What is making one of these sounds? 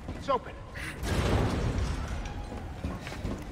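A heavy metal door scrapes open.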